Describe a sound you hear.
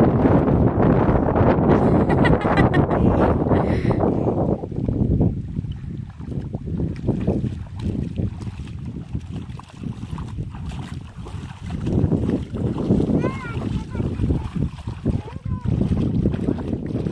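Feet wade and splash through shallow water.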